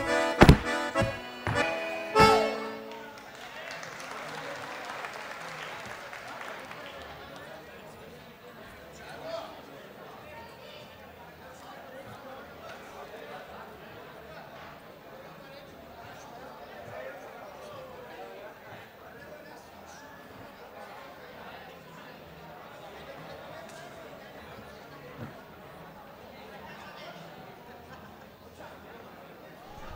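A crowd murmurs and chatters throughout.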